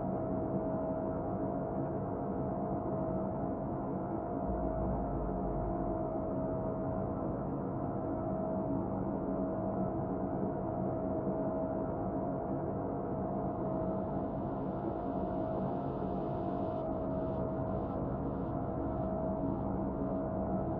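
Laser beams hum steadily.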